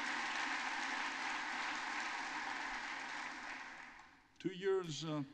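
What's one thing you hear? Applause fills a large hall and fades away.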